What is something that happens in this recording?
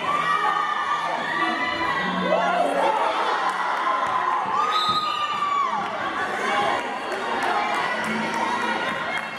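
Sneakers squeak sharply on a hard court floor in a large echoing gym.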